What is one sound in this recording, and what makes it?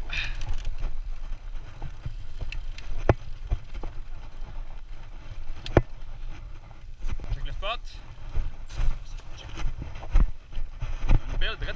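A bicycle rattles and clanks over bumps.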